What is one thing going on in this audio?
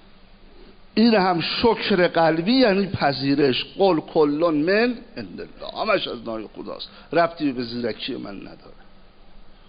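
An elderly man speaks with feeling through a microphone in a large echoing hall.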